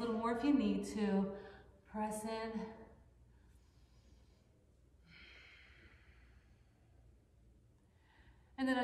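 A woman speaks calmly, close by.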